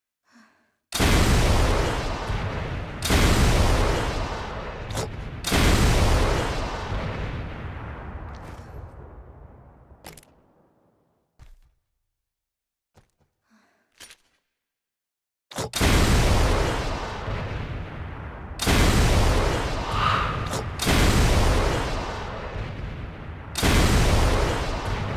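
Explosions roar and rumble.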